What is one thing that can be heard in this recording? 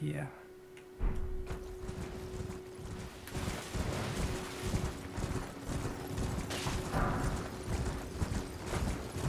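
A horse gallops over grass.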